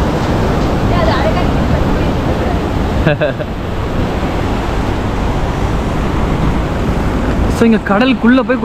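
Strong wind gusts loudly outdoors.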